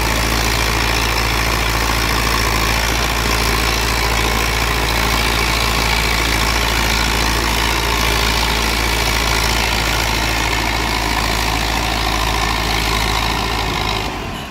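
A tractor engine runs with a steady low rumble close by.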